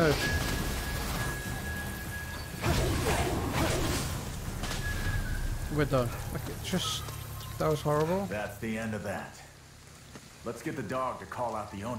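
Magic blasts crackle and whoosh in bursts.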